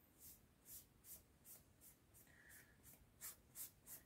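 A sponge rubs against a board in short scratchy strokes.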